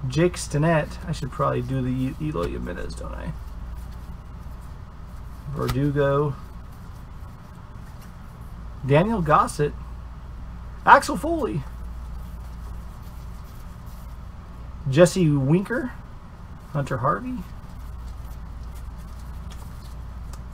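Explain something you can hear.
Trading cards rustle and click as hands flip through them.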